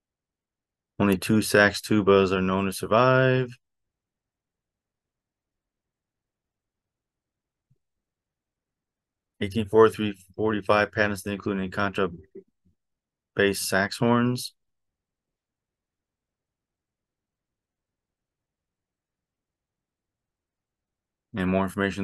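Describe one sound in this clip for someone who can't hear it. A man reads aloud calmly into a close microphone, with pauses.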